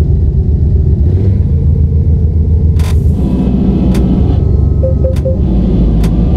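A truck engine rumbles low and steady while driving.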